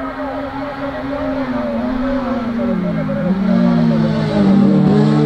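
Racing saloon cars sweep past with a falling engine note.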